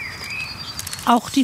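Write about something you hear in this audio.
A pheasant calls with a harsh crow.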